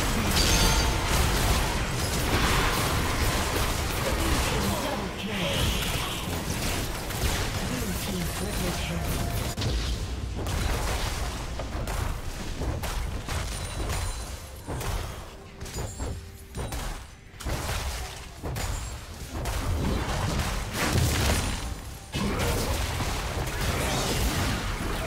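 Spell blasts and weapon hits crash and clash in a frantic fight.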